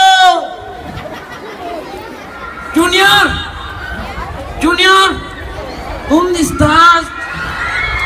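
Children shout and cheer loudly in bursts.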